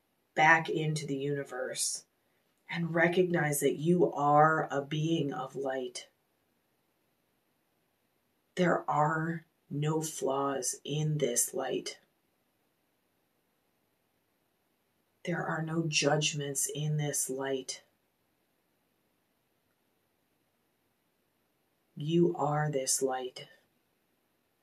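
A woman speaks slowly and calmly close to a microphone, pausing between phrases.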